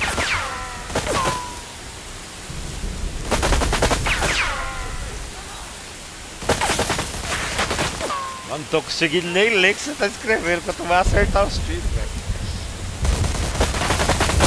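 Gunshots crack out in rapid bursts.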